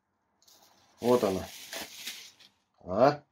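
Plastic wrap crinkles as it is pulled off a bowl.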